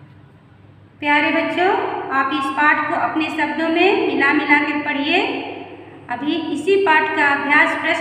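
A middle-aged woman speaks clearly and with animation close by.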